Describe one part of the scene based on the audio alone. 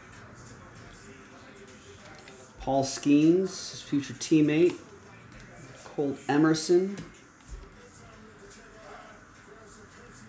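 Trading cards flick and rustle as hands shuffle them.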